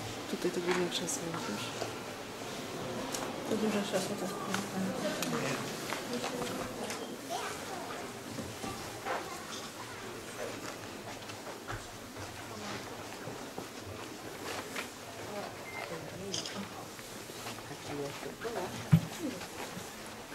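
A crowd of visitors murmurs and talks in a large echoing hall.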